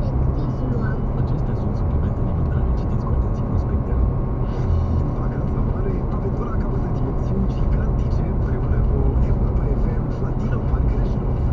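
A car's engine hums steadily inside the cabin.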